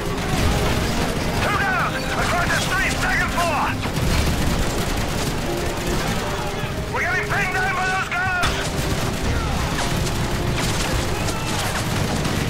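Explosions rumble heavily in the distance.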